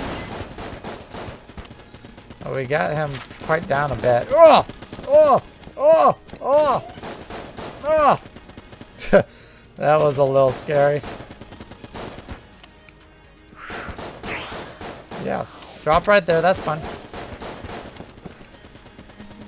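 A gatling gun fires rapid bursts of shots.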